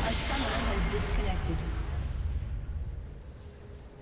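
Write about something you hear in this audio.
A loud rumbling blast bursts out and slowly fades away.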